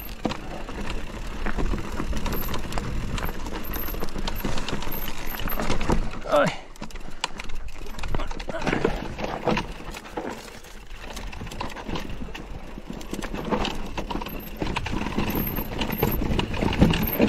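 Tyres of an electric mountain bike rattle and crunch over rocky dirt.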